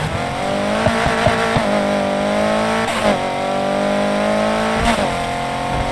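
Exhaust pops and crackles between gear shifts.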